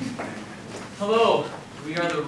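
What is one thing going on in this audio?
A choir of young men begins to sing in harmony.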